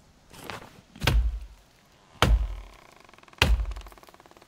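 An axe chops into a tree trunk with heavy thuds.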